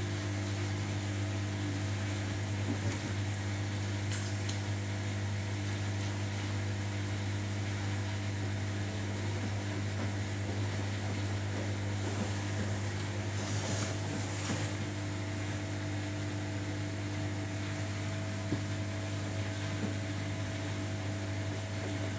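Wet laundry tumbles and sloshes in a front-loading washing machine's drum.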